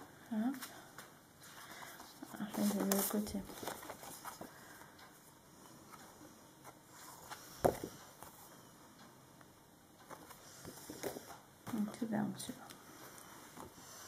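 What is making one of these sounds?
Sheets of stiff paper rustle and flap as they are handled close by.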